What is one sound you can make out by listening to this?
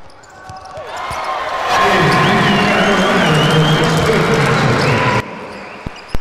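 A crowd in an echoing hall cheers loudly.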